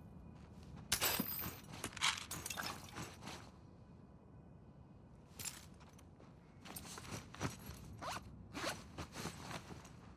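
Items rustle and clatter as they are picked up.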